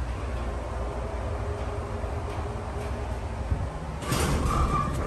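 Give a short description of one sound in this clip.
An elevator hums steadily as it rises.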